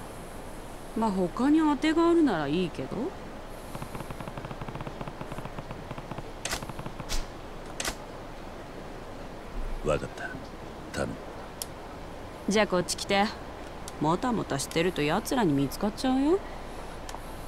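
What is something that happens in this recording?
A young woman speaks casually and flirtatiously, close by.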